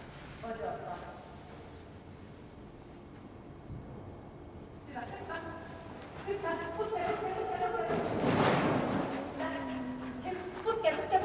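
A woman calls out commands to a dog in a large echoing hall.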